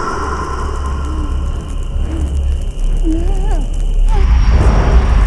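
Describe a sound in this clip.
A young woman moans and whimpers in pain.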